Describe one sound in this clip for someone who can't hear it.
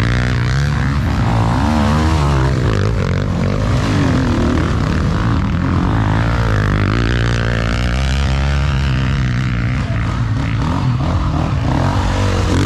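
Several dirt bike engines rev and roar close by.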